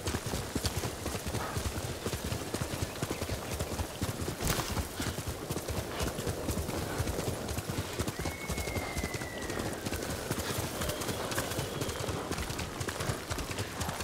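Horse hooves gallop rapidly over soft ground.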